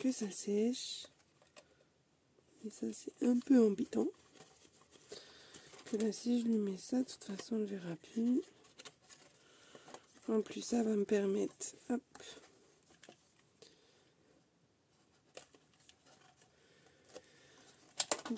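Stiff paper rustles and crinkles as it is handled and folded.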